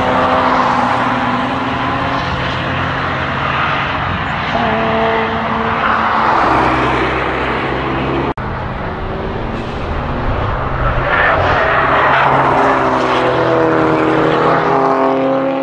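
Car engines roar loudly as cars race past.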